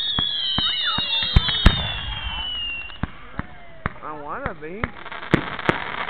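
Fireworks whistle and whoosh as they shoot up.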